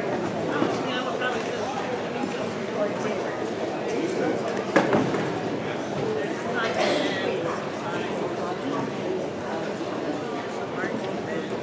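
A band plays music through loudspeakers.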